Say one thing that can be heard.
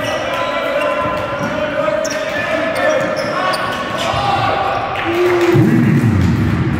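Spectators chatter and shout in an echoing hall.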